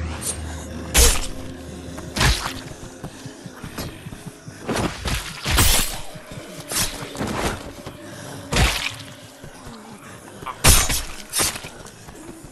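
A weapon strikes with sharp, heavy thuds several times.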